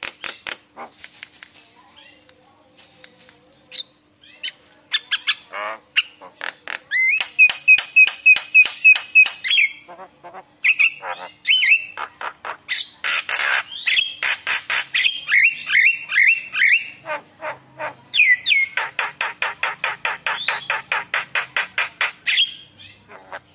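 A mynah bird chatters and whistles close by in rapid, repeated calls.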